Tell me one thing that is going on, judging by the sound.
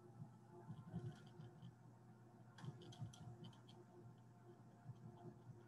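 Voices chatter faintly over an online call.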